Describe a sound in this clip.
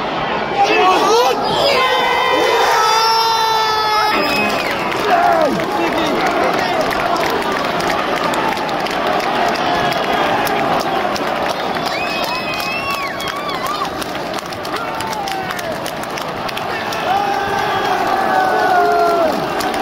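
Men nearby shout and chant with excitement.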